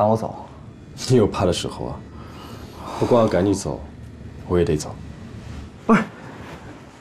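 A second young man answers quietly, close by.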